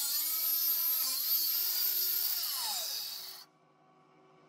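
An angle grinder screams as it cuts through metal, then winds down.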